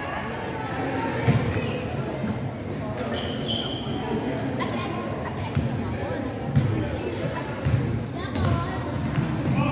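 Spectators talk in a low murmur in an echoing gym.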